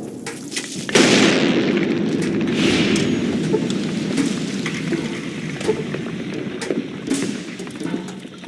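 A giant scorpion is struck in a dusty close fight, with loud rushing impacts.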